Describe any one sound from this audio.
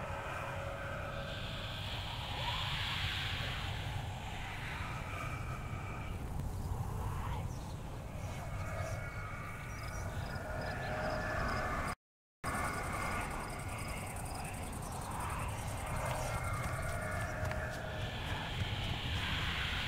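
Footsteps rustle softly through tall grass and undergrowth.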